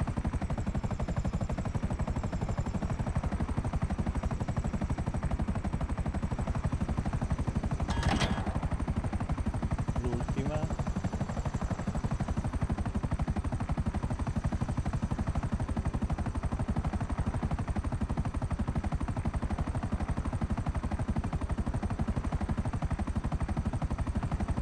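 A helicopter's rotor thuds steadily with a loud engine drone, heard from inside the cabin.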